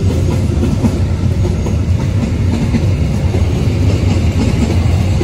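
A long freight train rumbles past close by, its wheels clattering steadily on the rails.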